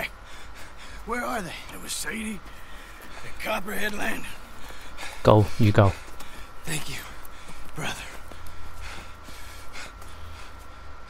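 A younger man answers calmly, close by.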